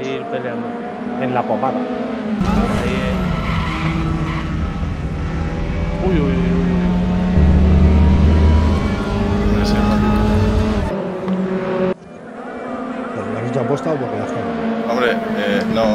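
Several racing car engines whine and buzz as the cars speed past.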